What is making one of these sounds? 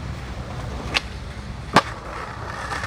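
A skateboard clacks down hard on concrete.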